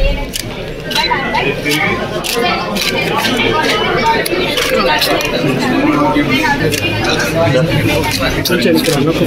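A small crowd murmurs.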